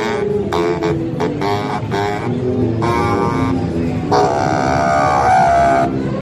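A boy plays a lively melody on a baritone saxophone.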